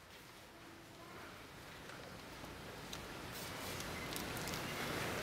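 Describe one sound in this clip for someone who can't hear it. A women's choir sings softly in an echoing hall.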